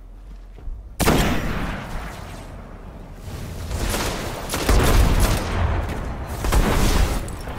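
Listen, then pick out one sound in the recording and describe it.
A rifle fires with sharp, loud bangs.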